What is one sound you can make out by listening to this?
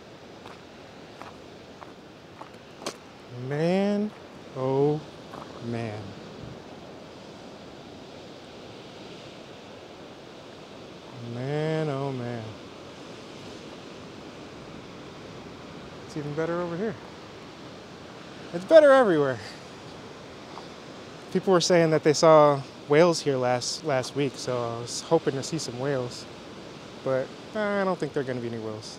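Waves wash and break against rocks below.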